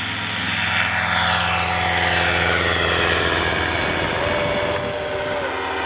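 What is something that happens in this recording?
A paramotor engine drones loudly and fades as it flies away.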